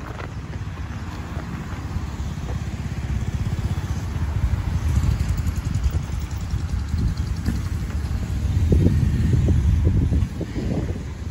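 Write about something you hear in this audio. Cars drive past on a road nearby.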